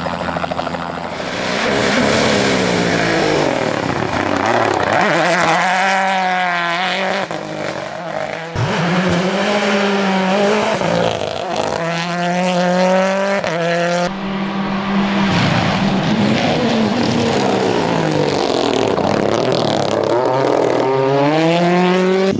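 A rally car engine revs hard and roars past, rising and falling in pitch.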